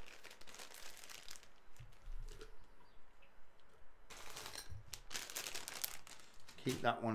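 Paper shreds rustle and crinkle.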